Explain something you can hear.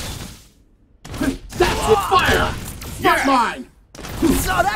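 Heavy punches land with sharp impacts.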